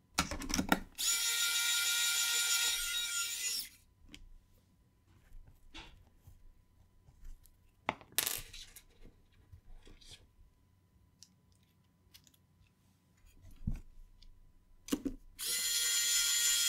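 An electric screwdriver whirs in short bursts.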